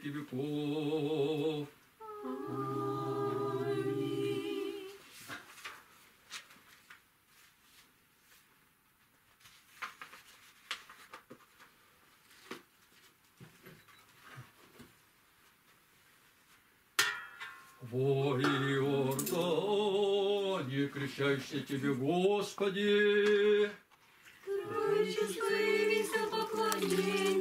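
A man chants a prayer in a deep, steady voice nearby.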